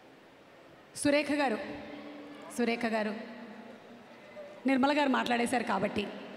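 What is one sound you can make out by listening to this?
An elderly woman speaks warmly through a microphone and loudspeakers.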